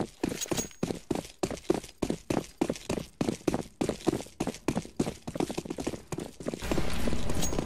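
Footsteps of game characters thud as they run on concrete.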